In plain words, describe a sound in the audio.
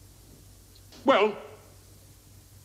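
An older man says a few words.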